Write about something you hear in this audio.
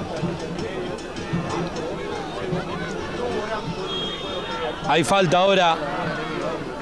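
A crowd of spectators chants and shouts outdoors.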